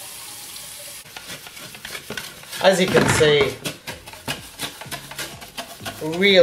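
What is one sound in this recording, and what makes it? A stiff brush scrubs inside a plastic jar.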